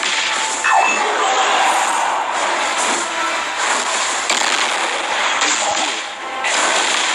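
Game battle effects crackle and burst with clashing magic blasts.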